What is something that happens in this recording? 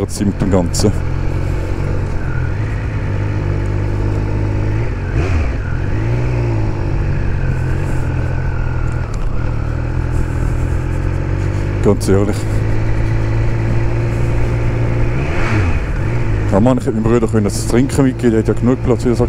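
A motorcycle engine hums steadily and revs up and down while riding.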